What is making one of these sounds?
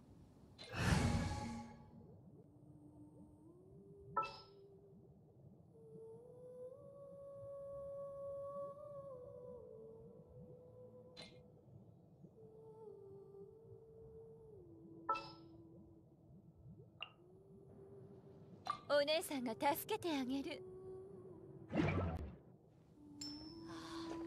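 Short menu chimes sound now and then.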